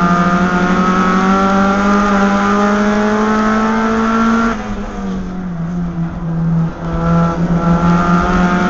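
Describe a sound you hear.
A race car engine roars loudly from close by, holding high revs, then dropping and picking up again.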